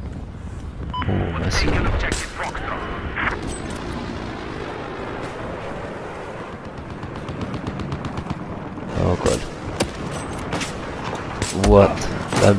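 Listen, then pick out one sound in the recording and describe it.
A sniper rifle fires loud shots.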